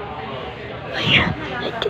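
A finger brushes and scrapes against a phone.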